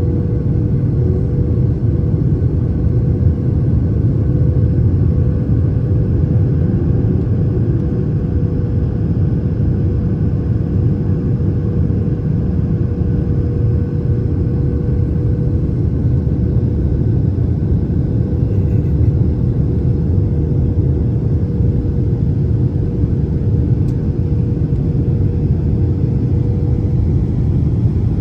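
Jet engines roar steadily with a low rumble and a droning hum.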